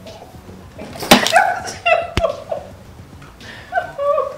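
A young woman laughs and squeals loudly nearby.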